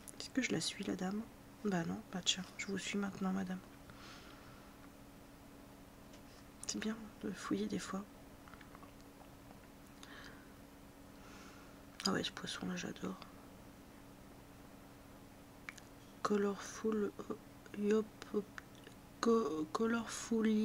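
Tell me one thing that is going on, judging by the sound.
A young woman talks casually into a microphone, pausing now and then.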